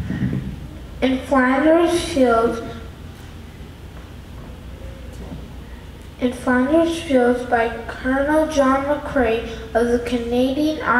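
A child speaks into a microphone, heard over loudspeakers in a large echoing hall.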